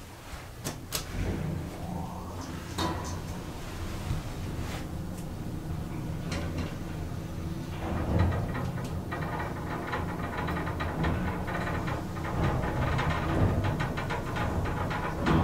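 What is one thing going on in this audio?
A lift motor hums steadily as the car moves.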